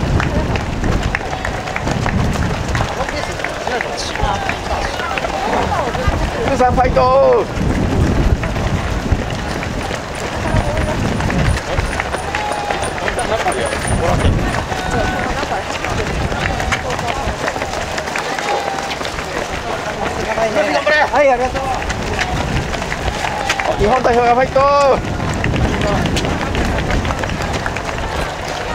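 Many runners' footsteps patter on pavement.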